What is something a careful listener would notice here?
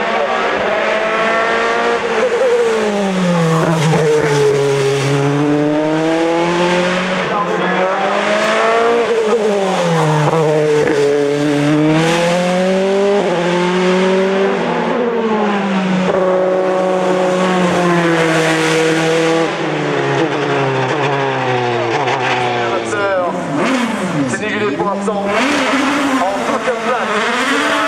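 A racing car engine roars loudly, revving up and dropping with each gear change.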